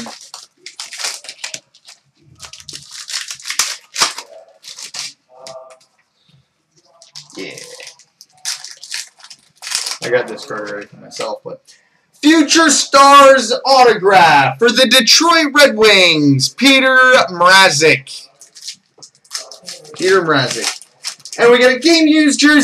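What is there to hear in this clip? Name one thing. Cardboard packs and trading cards rustle and slide as they are handled.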